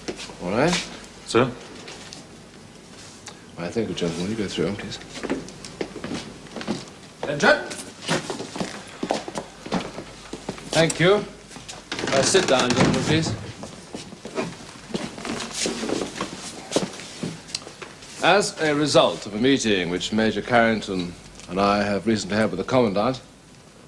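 Several men talk, one after another.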